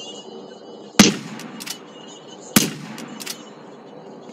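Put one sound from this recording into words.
A rifle fires two sharp, loud shots that ring out briefly.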